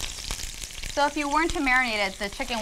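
A young woman speaks brightly and with animation close to a microphone.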